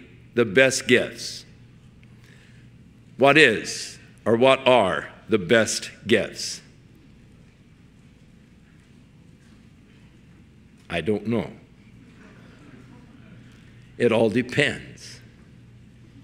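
An older man speaks forcefully into a microphone in bursts, with long pauses.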